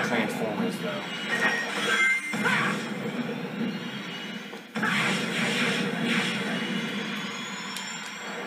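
Quick whooshing game sound effects play through a television speaker.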